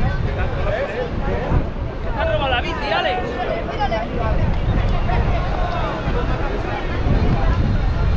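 A flag flaps and snaps in the wind.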